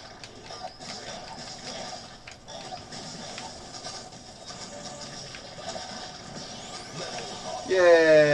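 Video game fight effects whoosh and thud in quick bursts.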